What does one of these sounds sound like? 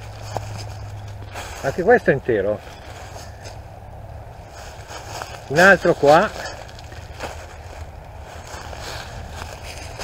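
Dry leaves crunch underfoot as someone walks.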